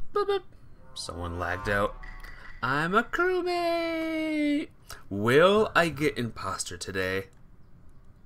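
A game's role reveal plays a rising musical sting.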